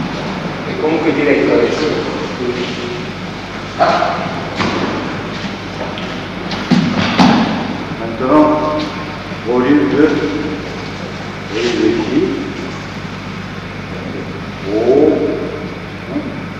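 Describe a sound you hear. A man speaks calmly, heard from a distance in a roomy hall.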